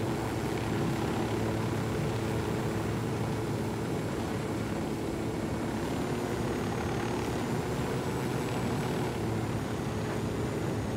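A helicopter's rotor thumps steadily and its engine drones loudly.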